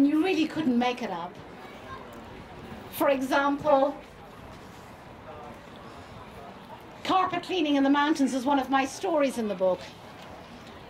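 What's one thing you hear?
A middle-aged woman speaks into a microphone over a loudspeaker, outdoors, in short phrases with pauses.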